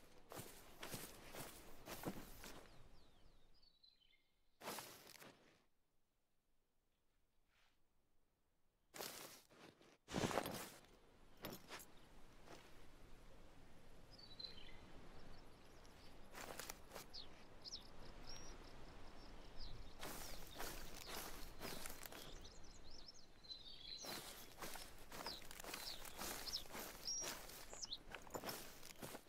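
Footsteps rustle through dry leaves and undergrowth.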